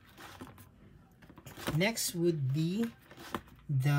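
Binder pages flip over with a soft swish.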